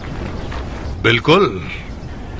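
A second man speaks firmly, close by.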